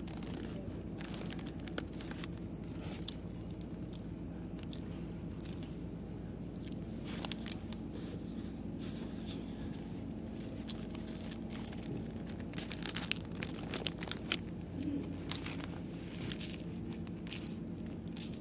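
Fingers rub and knock against the phone close by.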